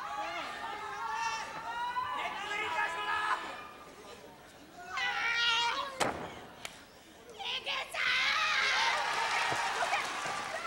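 A young woman shouts.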